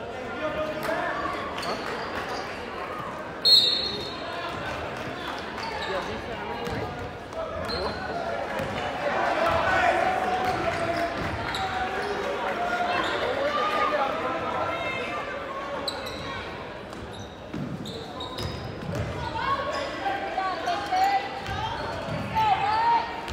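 Basketball shoes squeak on a hardwood floor.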